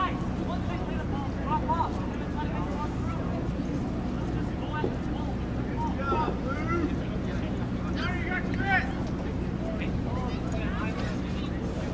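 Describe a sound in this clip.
Young men shout to each other far off across an open field.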